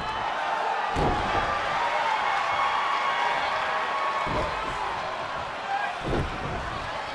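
Heavy thuds of bodies hitting a wrestling ring.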